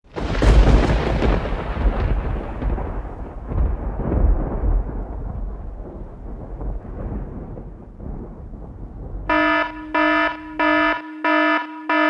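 Aircraft propeller engines roar loudly overhead and slowly fade.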